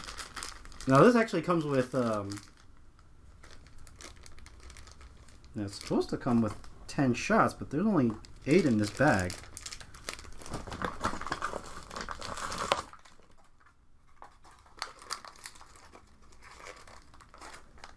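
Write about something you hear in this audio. Plastic toy parts click and rattle in a man's hands.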